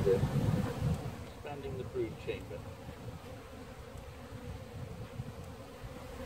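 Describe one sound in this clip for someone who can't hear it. Honeybees buzz around an open hive.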